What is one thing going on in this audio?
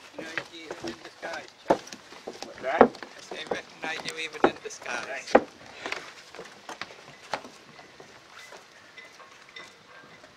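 Footsteps thud on a wooden dock.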